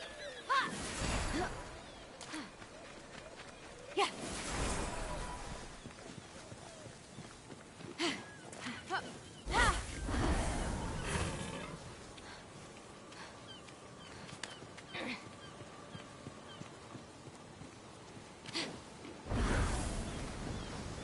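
Wings beat with loud rushing whooshes.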